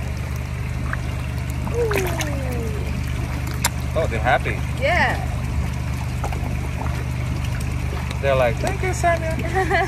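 Fish thrash and splash in shallow water close by.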